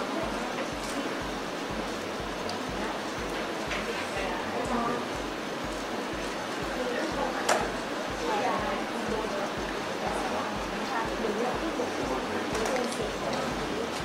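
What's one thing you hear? A woman speaks softly into a microphone.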